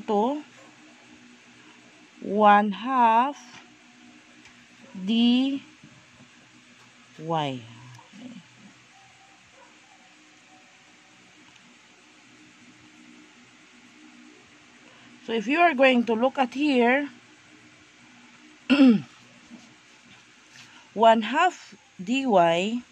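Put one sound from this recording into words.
A felt marker scratches softly across paper.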